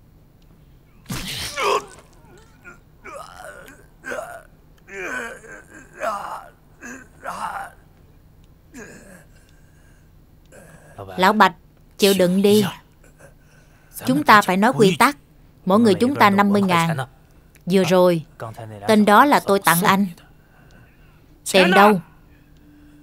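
An elderly man groans and speaks weakly in a strained, breaking voice.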